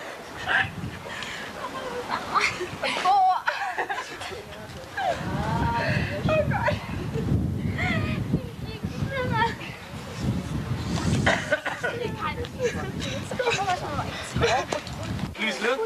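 Several women talk close by, outdoors.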